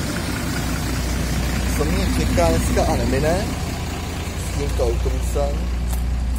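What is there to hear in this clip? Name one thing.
A bus rolls past close by.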